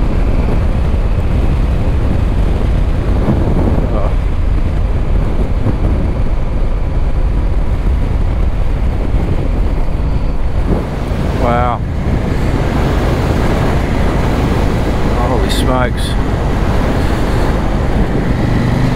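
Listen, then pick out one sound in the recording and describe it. Wind rumbles loudly against the microphone outdoors.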